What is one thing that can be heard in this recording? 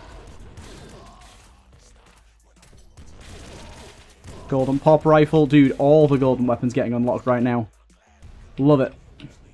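Small guns fire in quick bursts.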